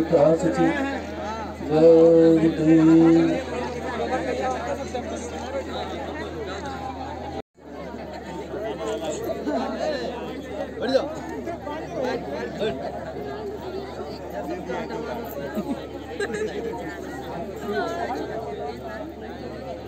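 A large crowd murmurs and chatters nearby.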